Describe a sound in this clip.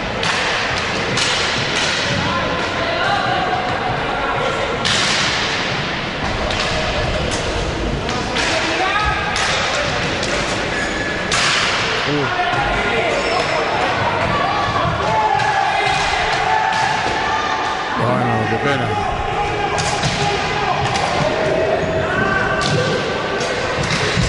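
Skate wheels roll and scrape across a wooden floor in a large echoing hall.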